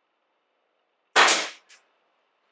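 A nail gun fires a nail with a sharp pop.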